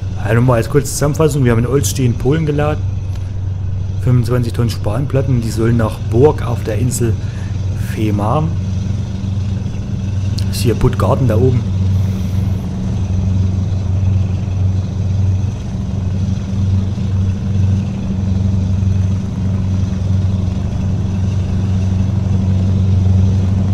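A truck engine hums steadily at a low pitch.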